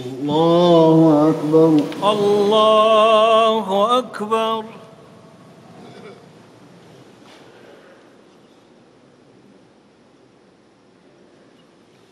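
A large crowd murmurs softly in a big echoing hall.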